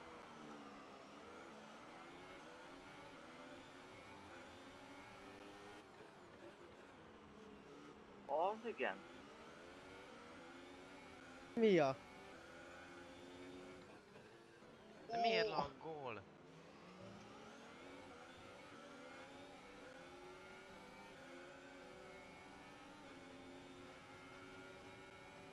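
A racing car engine screams at high revs, rising and dropping in pitch as it shifts gears.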